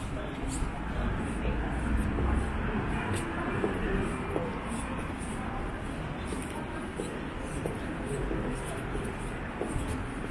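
Traffic hums steadily along a quiet city street outdoors.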